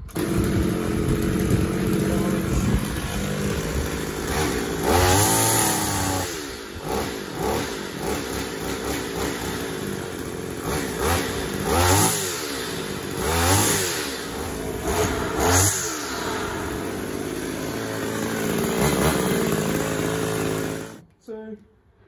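A petrol string trimmer engine runs and revs up and down.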